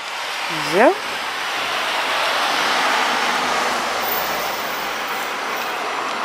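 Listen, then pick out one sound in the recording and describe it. A van engine hums as it drives slowly past below.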